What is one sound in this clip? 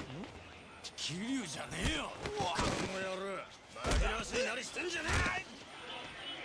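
A man yells furiously.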